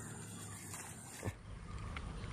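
A fish splashes in the water.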